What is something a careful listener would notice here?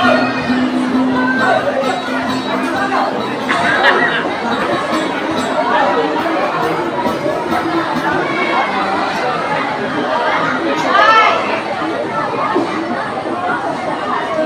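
A woman sings loudly into a microphone over loudspeakers.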